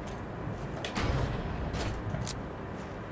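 A metal door slides open.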